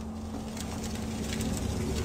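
A fireball roars past with a whoosh.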